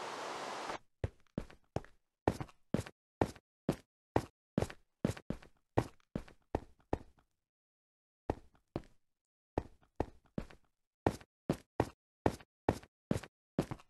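A pickaxe chips rhythmically at stone.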